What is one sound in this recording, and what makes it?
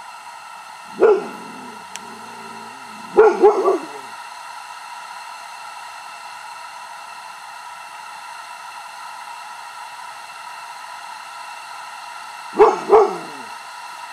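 A toad gives short, sharp squeaking chirps now and then.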